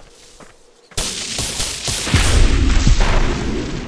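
A magic blast crackles and roars.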